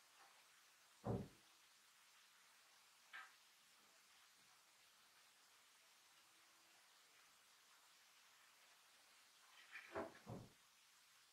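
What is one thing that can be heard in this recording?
A metal hoop knocks against a wooden table.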